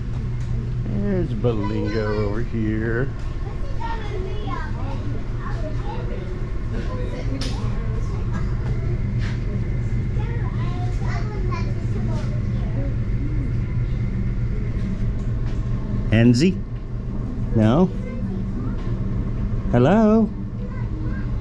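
Visitors' voices call out and echo nearby.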